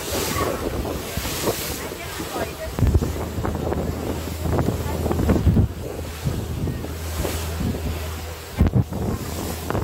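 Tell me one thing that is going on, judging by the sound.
Waves splash and rush against the side of a moving boat.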